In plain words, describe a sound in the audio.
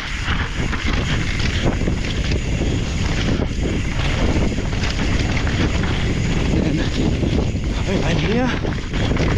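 Mountain bike tyres crunch and skid over a dry dirt trail on a fast descent.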